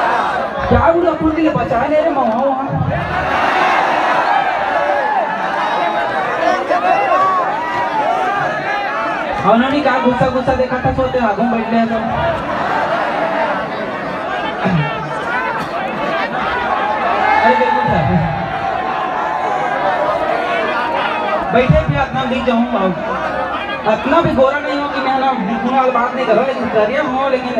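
A young man sings into a microphone over loudspeakers with animation.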